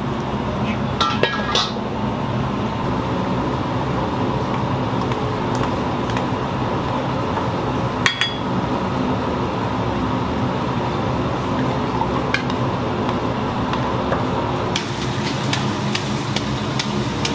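Gas burners roar steadily.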